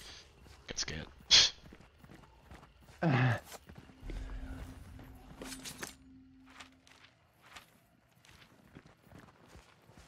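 Footsteps thud on a dirt path.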